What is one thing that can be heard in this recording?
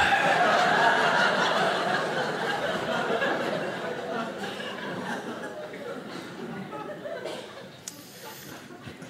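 An audience laughs and claps, slowly dying down.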